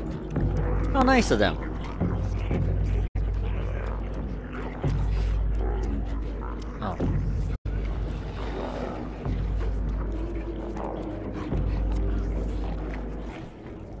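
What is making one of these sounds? A man talks with animation into a microphone, close up.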